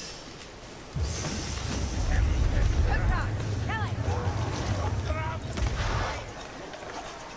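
Magical blasts whoosh and rumble deeply.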